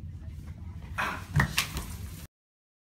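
Hands slap down on a hard floor.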